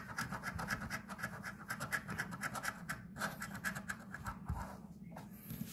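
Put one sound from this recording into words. A coin scrapes rapidly across a scratch card.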